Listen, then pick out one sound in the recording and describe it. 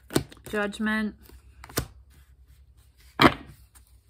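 A card slaps down onto a table.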